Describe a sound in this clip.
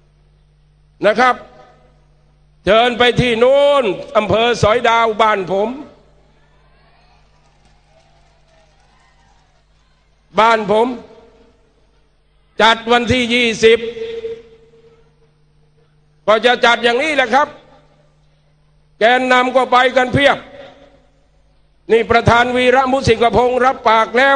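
An elderly man speaks forcefully through a loudspeaker, in short bursts with pauses between them.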